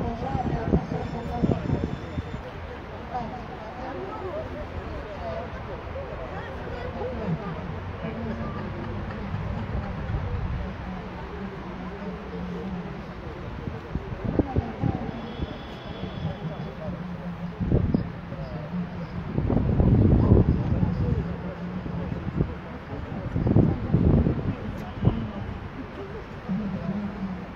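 A crowd of elderly men and women murmurs and chats outdoors.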